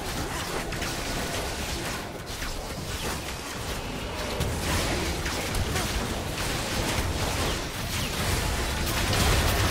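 Game battle effects crackle and blast in quick bursts.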